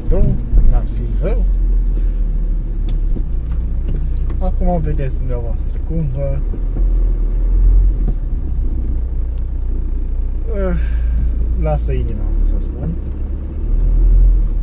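A car engine hums steadily with a low rumble.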